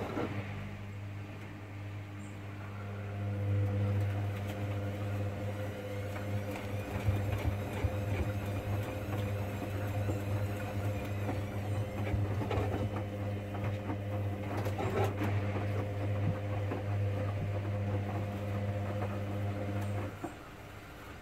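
A washing machine motor hums steadily, then stops.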